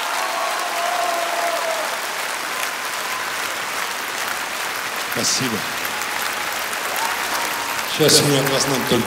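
A large audience applauds and cheers in a big hall.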